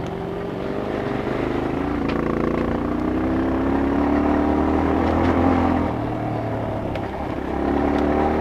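A dirt bike engine revs and hums loudly up close, rising and falling in pitch.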